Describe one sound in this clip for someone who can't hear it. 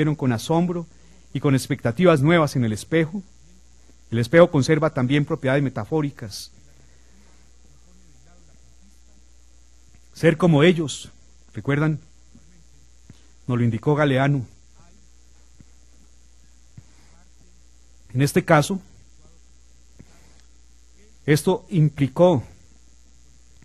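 A man speaks calmly into a microphone, in pauses, reading out.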